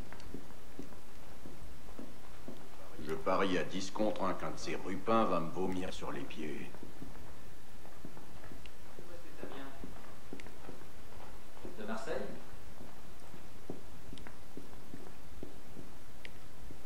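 Soft footsteps tap on a wooden floor.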